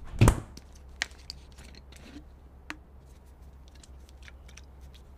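A plastic water bottle crinkles as a woman drinks from it.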